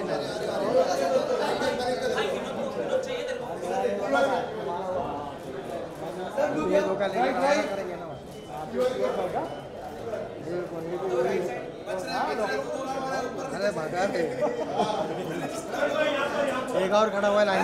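Several men and women talk and call out close by in a lively crowd.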